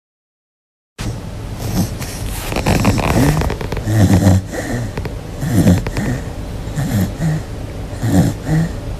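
A dog snores softly in its sleep.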